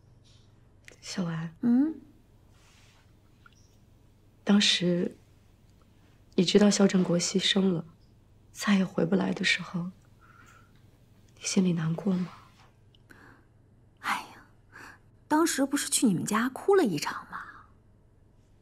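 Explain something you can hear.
A young woman speaks softly and gently up close.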